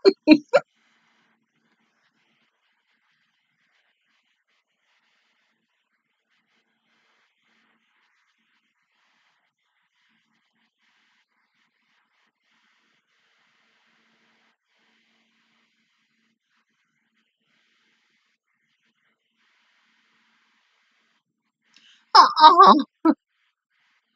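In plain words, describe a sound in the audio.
A young woman speaks briefly, close up.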